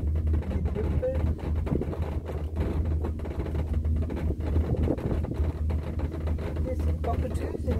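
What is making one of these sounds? A cable car hums and rattles steadily.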